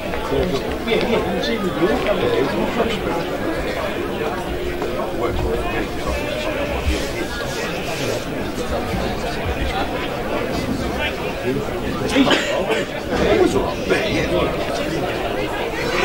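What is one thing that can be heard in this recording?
Men shout and call to each other across an open field.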